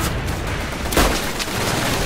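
A rifle fires a single loud shot close by.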